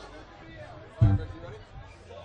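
A drum is struck with a heavy thump.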